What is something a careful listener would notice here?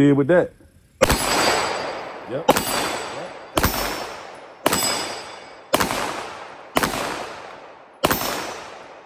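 A pistol fires single loud shots at a steady pace, each echoing outdoors.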